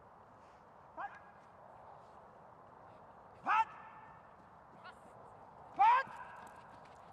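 A woman shouts short commands to a dog.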